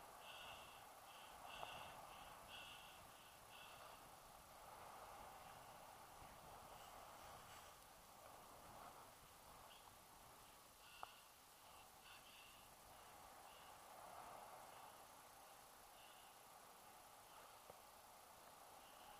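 Wind rushes steadily past a microphone outdoors.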